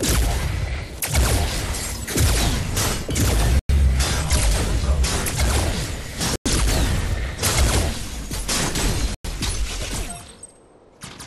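Fiery blasts and explosions roar loudly in a game fight.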